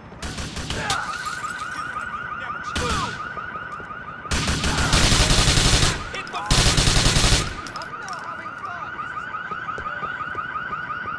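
A police siren wails steadily.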